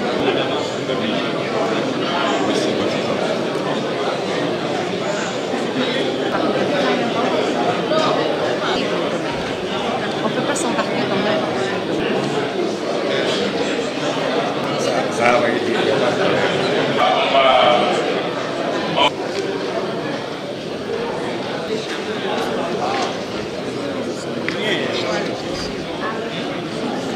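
A crowd of men and women murmur and chatter throughout a large room.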